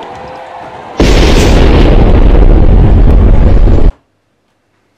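A cannon fires with a loud, rumbling blast.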